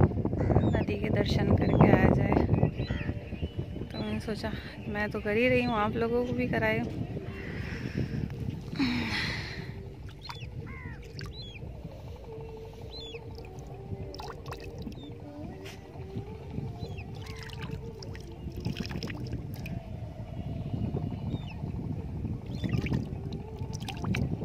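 Wind blows across open water outdoors.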